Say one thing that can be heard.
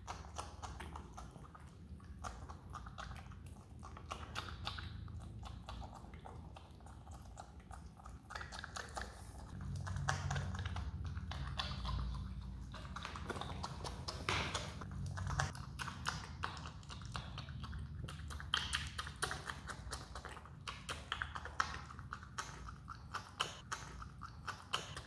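A marmot chews food with quick, wet crunching bites, close by.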